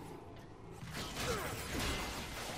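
A heavy metallic blow lands with a clang.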